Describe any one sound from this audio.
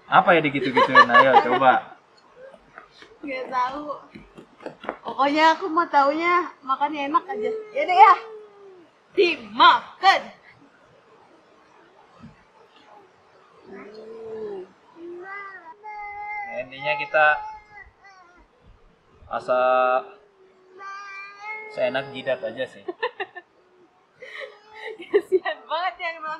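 A woman laughs cheerfully close by.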